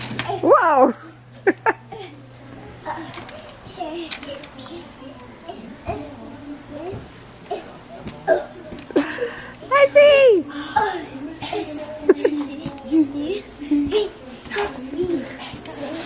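A young child shouts and squeals excitedly close by.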